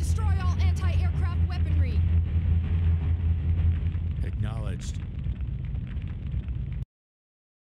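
A fire roars with a deep, steady rumble.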